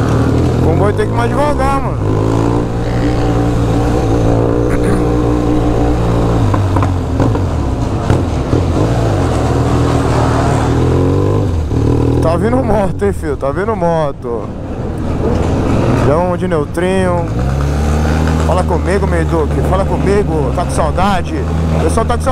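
A motorcycle engine revs up and down.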